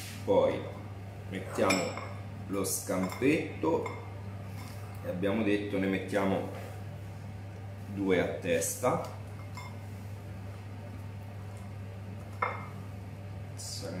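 Metal tongs click as food is lifted.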